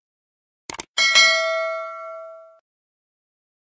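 A small bell chimes brightly and rings out.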